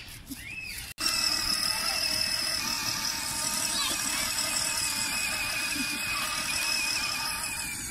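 A toy electric motorbike's motor whines steadily as it rolls along.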